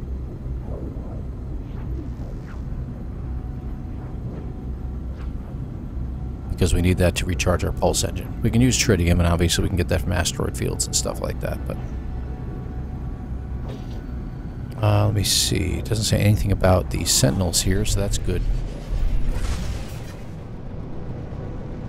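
A spaceship engine rumbles and roars steadily.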